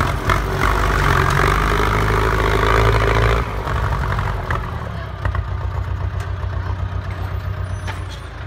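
A diesel farm tractor chugs under load as it pulls a disc plough.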